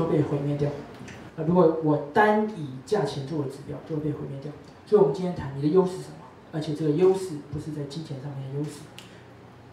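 A young man speaks calmly through a microphone.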